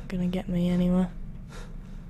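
A small fire crackles softly.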